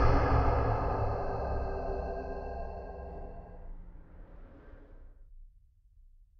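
A low musical tone swells and slowly fades away.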